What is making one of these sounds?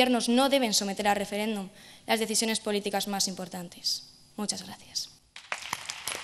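A girl speaks calmly into a microphone in a large echoing hall.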